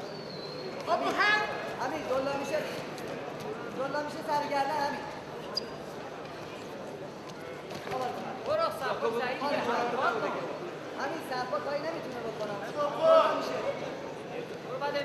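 Spectators shout and cheer in bursts.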